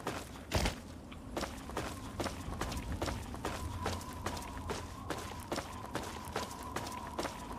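Footsteps crunch steadily over rubble.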